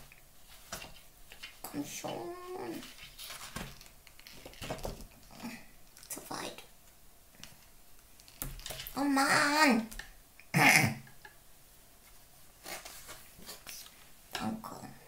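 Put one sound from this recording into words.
An adult speaks close by in a playful, animated puppet voice.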